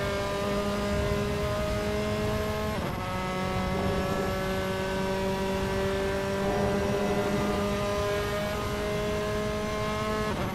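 A racing car engine roars at high revs, steadily climbing in pitch and dropping briefly at each gear change.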